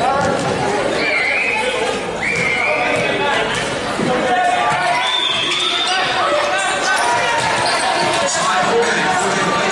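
Young men call out across an echoing hall.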